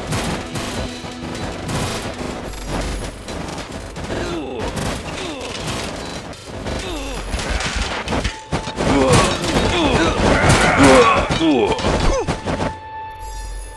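Game swords clash and strike rapidly in a busy battle.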